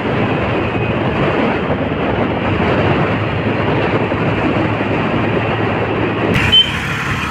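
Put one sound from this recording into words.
Wind rushes loudly past a moving vehicle.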